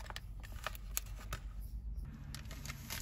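Fingers tap and rub against a paper envelope.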